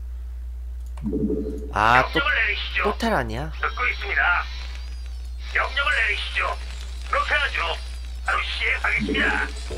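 Video game battle sounds crackle and zap.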